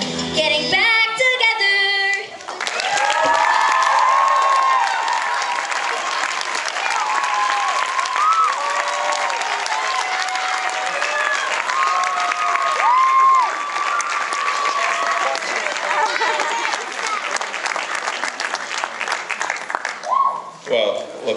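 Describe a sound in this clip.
A young girl sings through a microphone in a large echoing hall.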